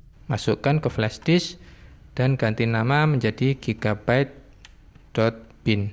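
A cable plug clicks into a socket.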